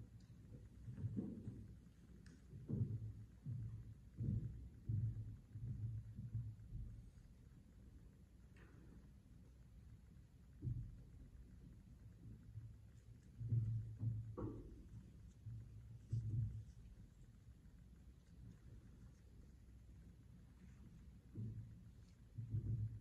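Metal vessels and objects are set down and knock softly on a table.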